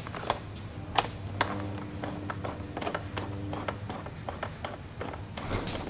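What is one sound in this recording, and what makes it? A key clicks as it turns in a lock.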